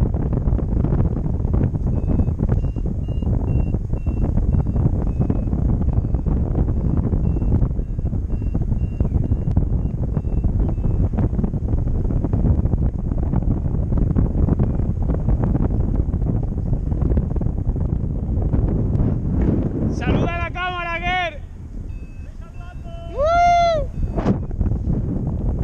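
Strong wind roars steadily past the microphone.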